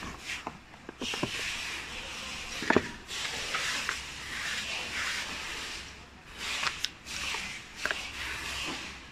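Paper rustles and crinkles as a leaflet is handled.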